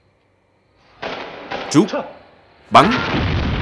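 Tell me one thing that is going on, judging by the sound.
A man calls out a short command.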